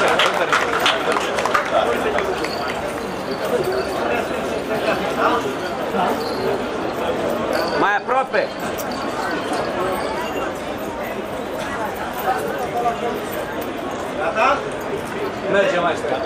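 A large outdoor crowd murmurs and chatters.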